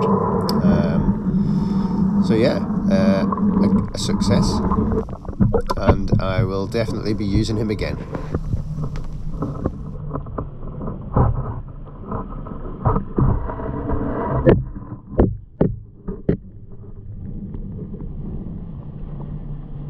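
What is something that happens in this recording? Water rumbles and gurgles close by, heard from underwater.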